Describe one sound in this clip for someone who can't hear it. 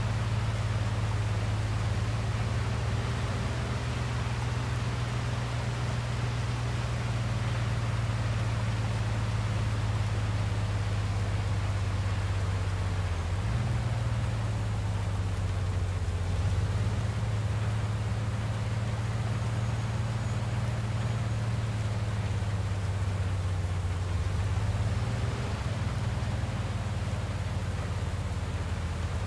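Rain hisses steadily on the road.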